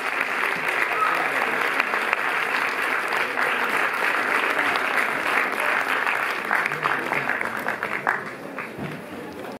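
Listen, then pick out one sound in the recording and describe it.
An audience claps loudly in a large room, then the applause fades.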